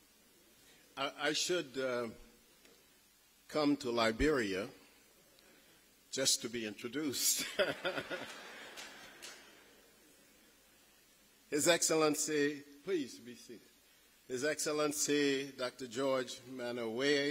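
A man speaks slowly and formally through a microphone and loudspeakers in a large echoing hall.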